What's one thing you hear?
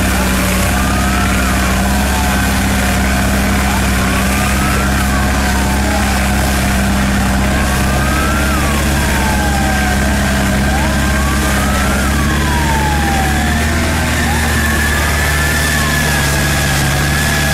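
A siren wails up and down over and over.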